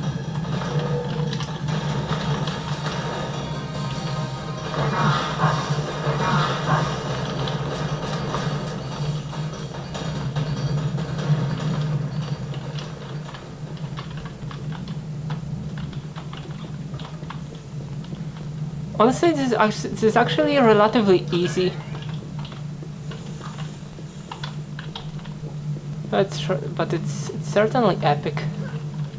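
Keys click and clatter on a keyboard.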